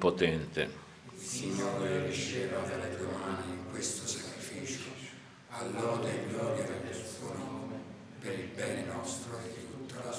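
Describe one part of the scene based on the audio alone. A man chants softly further off, with some echo.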